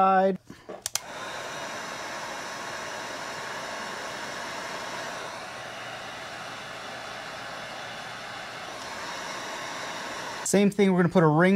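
A heat gun blows with a steady roaring hiss.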